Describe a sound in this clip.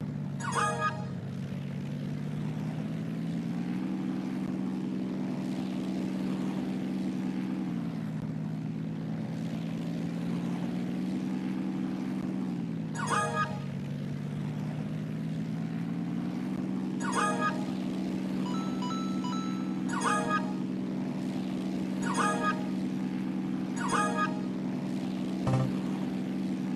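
A small propeller plane engine drones steadily, its pitch rising and falling.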